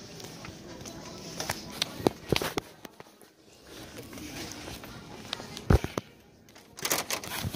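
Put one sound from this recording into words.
Fingers rub and knock against a phone's microphone.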